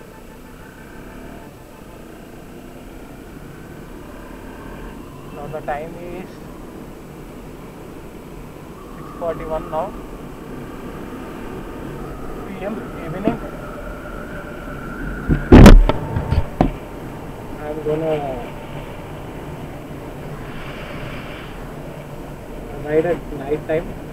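Wind rushes past the rider.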